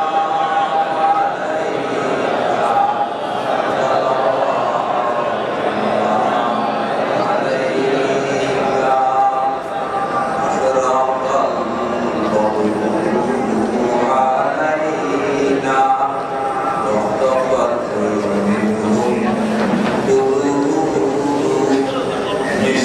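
A large crowd of men chants in unison.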